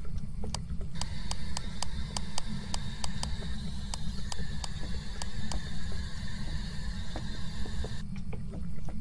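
A radio hisses with static as it is tuned between stations.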